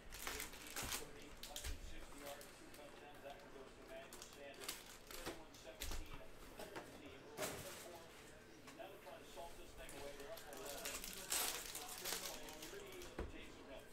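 Cardboard packs rustle and tap against each other.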